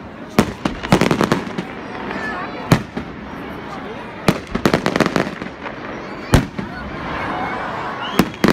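Fireworks burst with loud, sharp bangs.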